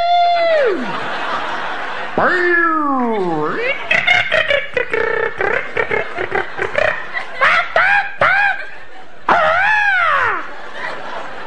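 A man beatboxes into a microphone, making sliding whistle-like sweeps and quick clicks.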